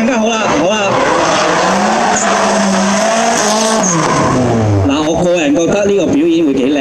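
A car engine revs loudly, rising and falling in pitch.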